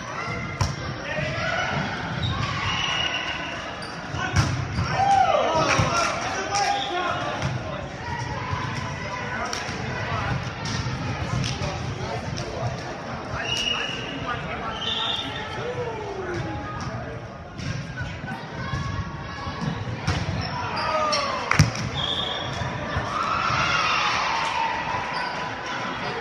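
A volleyball is hit with sharp slaps in a large echoing gym.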